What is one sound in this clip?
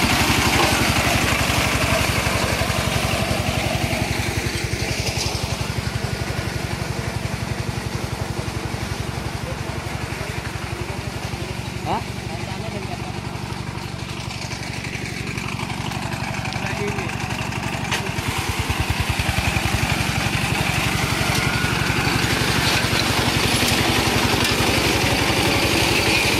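A single-cylinder diesel engine on a walk-behind two-wheel tractor chugs throughout.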